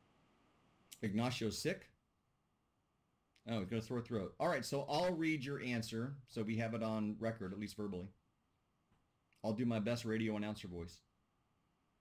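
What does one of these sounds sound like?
A middle-aged man speaks calmly through an online call, pausing between phrases.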